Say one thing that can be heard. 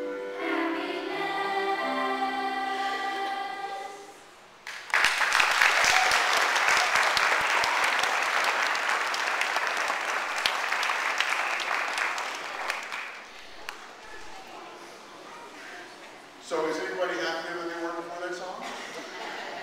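A choir of young voices sings together in a large echoing hall.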